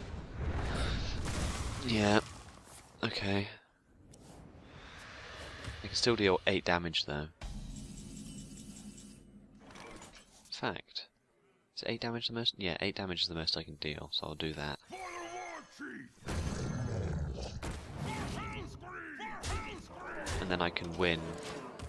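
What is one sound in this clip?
Magical whooshes and chimes ring out as cards are played.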